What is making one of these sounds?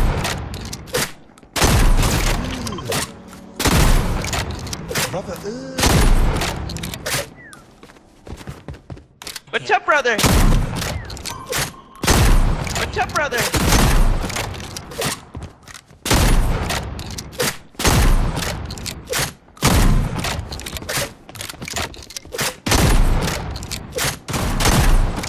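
Shotgun blasts fire again and again, loud and sharp.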